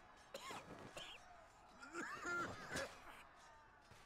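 An elderly man groans and speaks in a strained voice.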